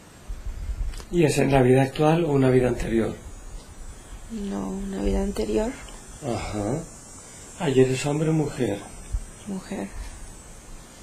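A man speaks calmly and slowly nearby.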